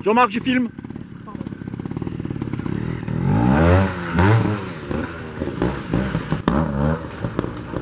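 A motorbike engine putters and revs up sharply in bursts nearby.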